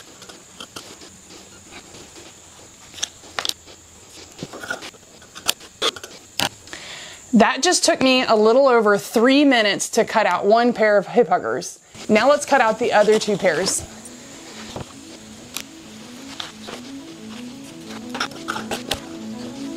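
Scissors snip through fabric.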